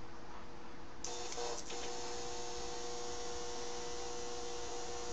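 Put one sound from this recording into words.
An electric spark crackles and buzzes steadily.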